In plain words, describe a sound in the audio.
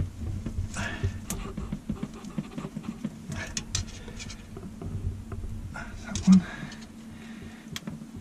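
A metal tool scrapes and clicks against a metal pipe fitting.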